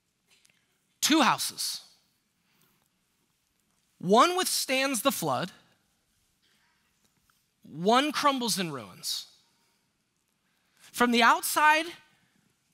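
A man speaks with animation through a headset microphone, in short bursts with pauses.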